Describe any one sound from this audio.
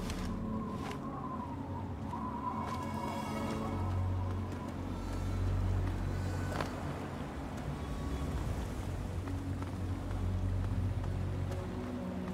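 Footsteps crunch over rubble and gravel.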